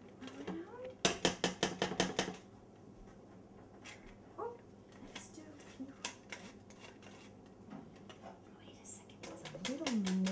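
A flour sifter clicks and rattles as its handle is squeezed.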